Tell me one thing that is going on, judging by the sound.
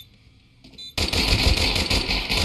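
Pistol shots fire in quick succession, loud and close.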